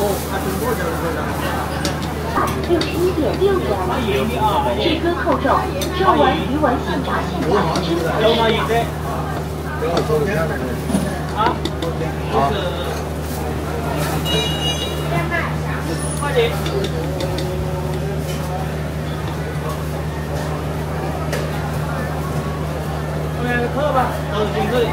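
A small spoon scrapes meat filling from a plate.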